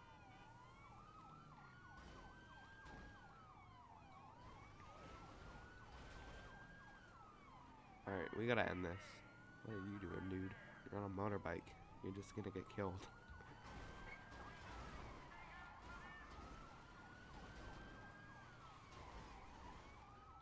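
A police siren wails steadily up and down.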